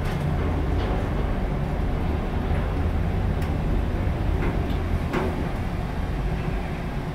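An elevator hums and rumbles steadily as it moves.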